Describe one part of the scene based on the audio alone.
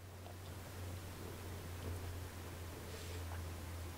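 A paintbrush swishes and taps in a jar of water.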